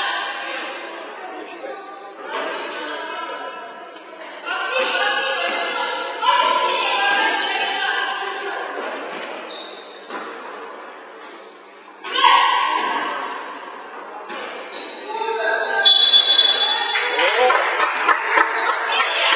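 Sneakers squeak on a hard court floor in an echoing sports hall.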